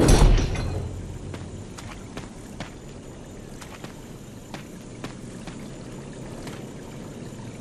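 Footsteps crunch on the ground at a steady pace.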